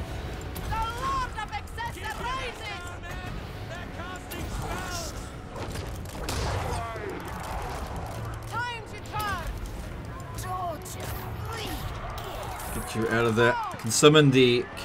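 A distant battle rumbles with clashing weapons.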